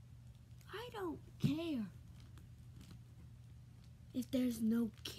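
A young boy speaks close by, with animation.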